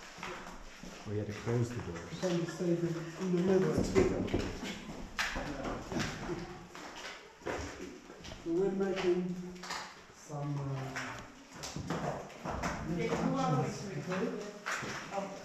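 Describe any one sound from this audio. A middle-aged man talks close by with animation.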